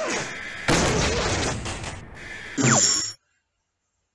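A game explosion bursts with a crackling roar.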